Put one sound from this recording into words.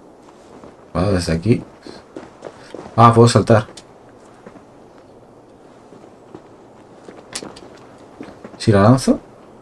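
A young man talks in short, lively bursts close to a microphone.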